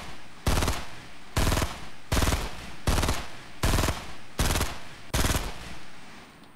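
A rifle fires a series of loud, evenly spaced shots.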